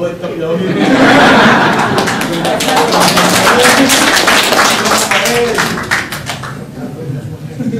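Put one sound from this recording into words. A crowd claps hands in applause.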